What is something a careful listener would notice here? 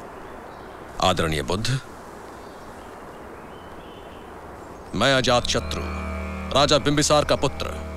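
A man speaks forcefully and loudly, close by.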